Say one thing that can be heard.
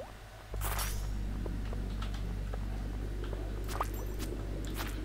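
Short game sound effects clink and chime.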